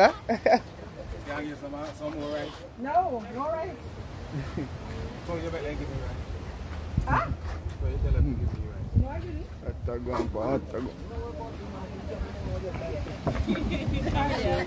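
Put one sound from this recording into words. Several adults chat and laugh in the background.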